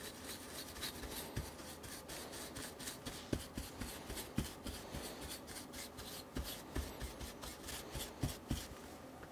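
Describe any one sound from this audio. A small metal tool taps and scrapes against a circuit board.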